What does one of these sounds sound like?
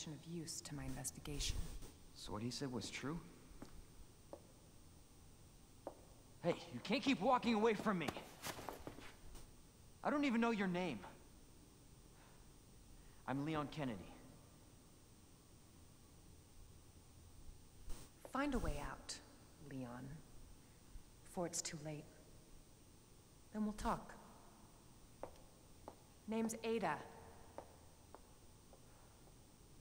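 A young man speaks quietly close to a microphone.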